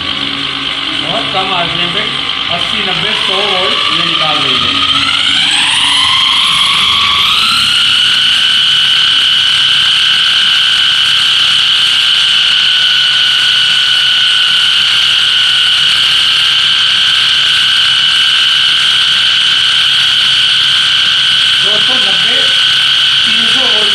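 An electric motor spins up with a rising whine, then hums at a steady high pitch.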